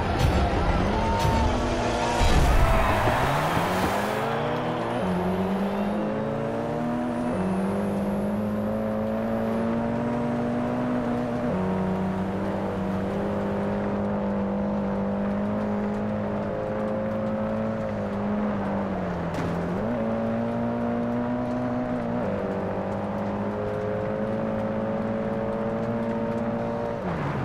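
A car engine revs hard, rising in pitch and dropping with each gear change.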